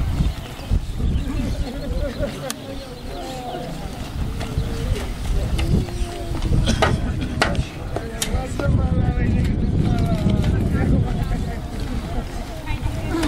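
A large crowd of men murmurs and talks outdoors.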